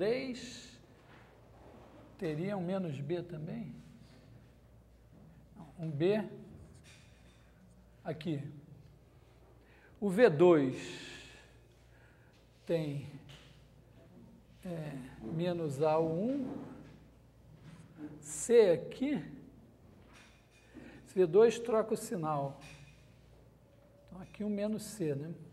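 A young man speaks calmly in short bursts, with pauses.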